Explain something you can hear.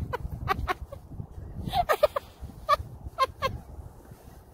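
A young boy giggles and laughs close by.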